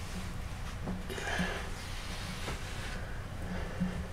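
Hands rustle softly against a figure.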